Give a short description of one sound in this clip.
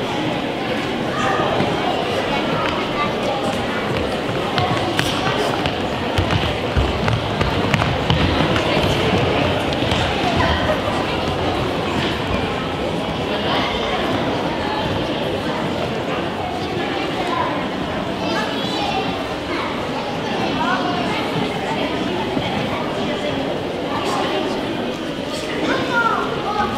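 A crowd of children chatters in the background.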